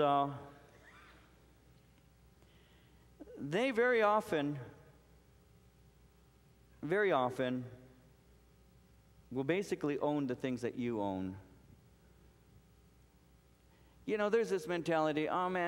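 A middle-aged man speaks slowly and with feeling through a microphone, with pauses between phrases.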